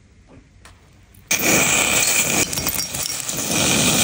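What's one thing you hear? A glass cracks sharply.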